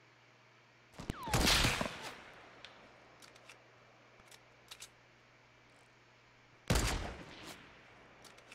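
A rifle fires loud, single shots that echo away.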